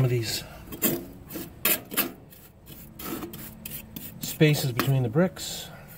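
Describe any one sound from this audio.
A trowel scrapes and pats wet mortar on stone.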